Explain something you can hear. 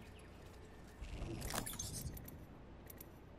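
A loot box opens with a rising whoosh and clatter.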